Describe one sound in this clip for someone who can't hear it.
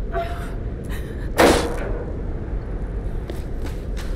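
A wooden door creaks and bangs open.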